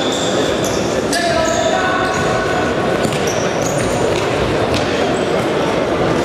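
Sneakers squeak sharply on a hard floor in an echoing hall.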